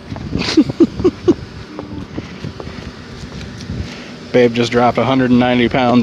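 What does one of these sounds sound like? Footsteps scuff on wet pavement outdoors.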